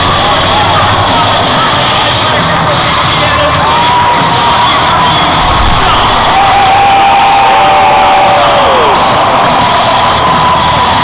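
A large crowd cheers and roars in a big open stadium.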